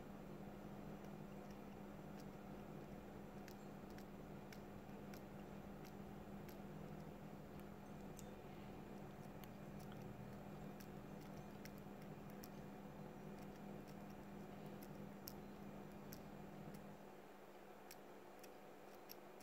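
A metal tool scrapes and clicks against a small metal part in close, quiet ticks.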